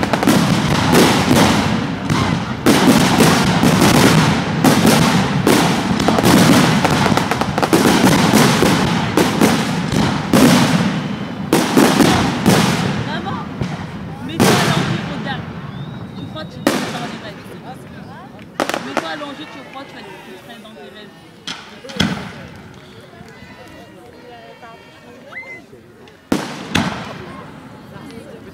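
Fireworks burst with loud, rapid booms and bangs outdoors.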